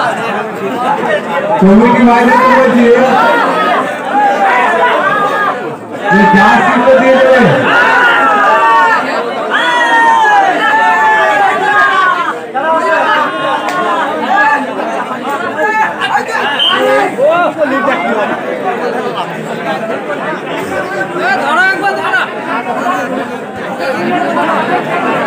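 Young men shout to each other close by.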